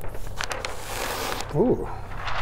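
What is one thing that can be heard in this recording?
Paper rustles as a large sheet is handled.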